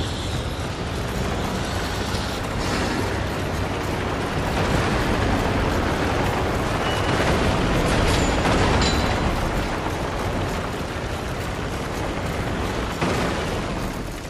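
Footsteps run over gravel and dirt.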